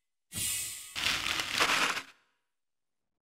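A burst of roaring noise swells and cuts off.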